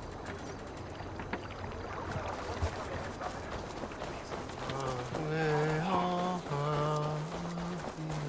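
Footsteps crunch on wet ground.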